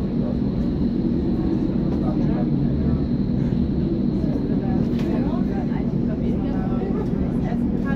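Another train rushes past close by on a neighbouring track.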